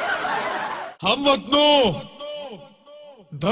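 A man sings loudly with animation.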